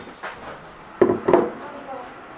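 A jug knocks down onto a table.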